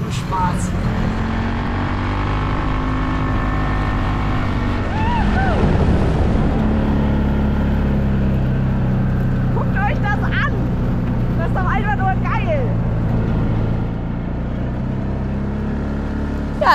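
A quad bike engine drones steadily close by.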